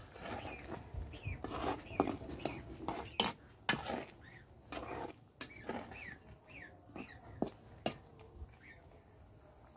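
A metal spatula scrapes around a wok.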